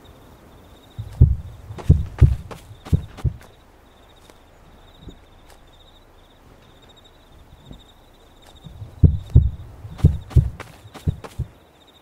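Footsteps thud heavily on the ground.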